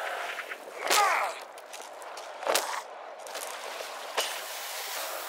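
A heavy blow thuds against a body.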